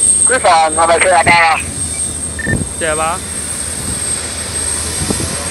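A jet engine whines steadily nearby.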